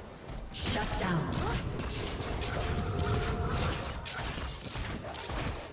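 Game spells and attacks whoosh and clash.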